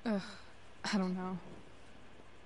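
A young woman speaks quietly and hesitantly, close by.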